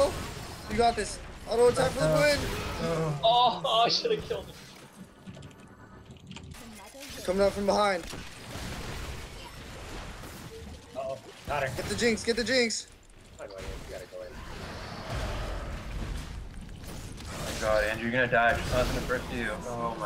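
Magic blasts and clashing weapons crackle in a game battle.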